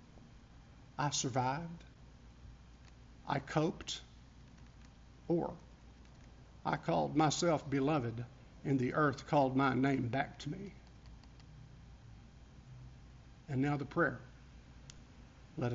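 A middle-aged man speaks calmly into a microphone, in short phrases with pauses, in a room with a slight echo.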